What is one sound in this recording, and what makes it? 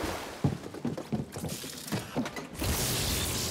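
Footsteps thud quickly on a metal floor.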